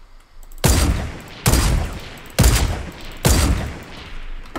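Sniper rifle shots crack loudly several times.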